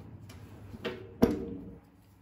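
A card taps down on a table.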